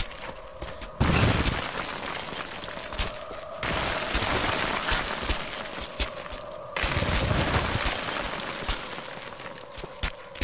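Wind rushes in strong gusts.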